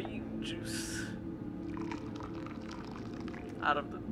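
Coffee pours from a pot into a mug.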